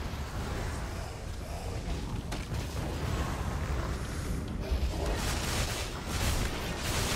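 Magic spells blast and crackle in a fight.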